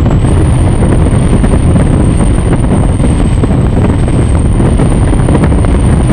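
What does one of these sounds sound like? Water sprays and crashes against the hull at high speed.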